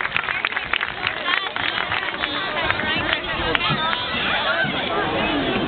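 A crowd cheers and shouts in the distance.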